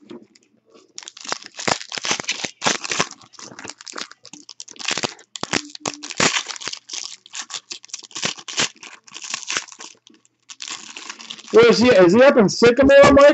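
Foil card wrappers crinkle and tear as they are opened.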